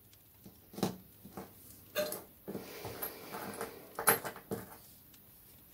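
Small metal charms clink and tap on a wooden table.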